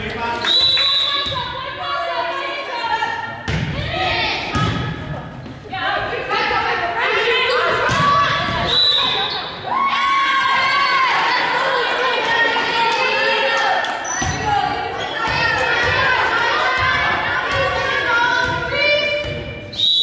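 Young women call out and cheer in a large echoing gym.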